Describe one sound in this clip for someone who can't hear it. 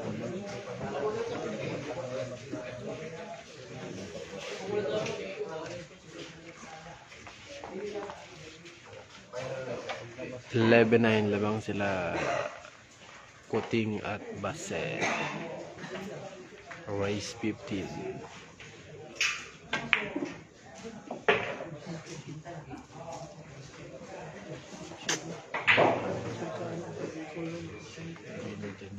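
Men talk casually in the background.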